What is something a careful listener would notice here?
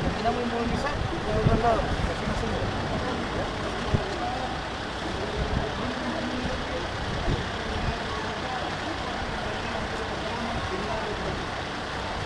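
Men talk nearby.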